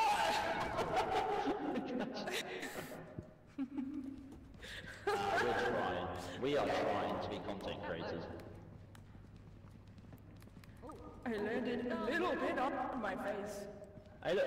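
A man talks and laughs with animation into a close microphone.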